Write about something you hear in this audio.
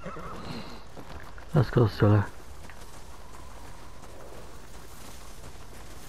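Horse hooves crunch through snow.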